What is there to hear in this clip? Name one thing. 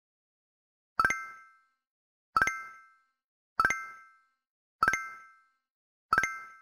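A bright electronic chime rings over and over at a steady pace.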